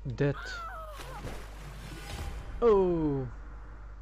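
A big splash of water crashes down.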